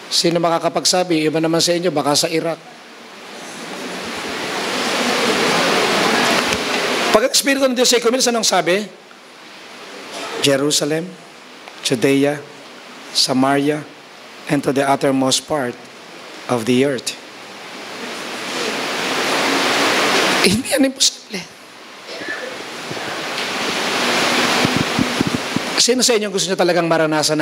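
A middle-aged man speaks slowly and calmly into a microphone, heard through loudspeakers in an echoing hall, with long pauses.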